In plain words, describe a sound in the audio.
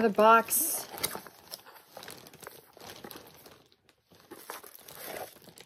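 Cardboard packaging rustles and scrapes as it is opened.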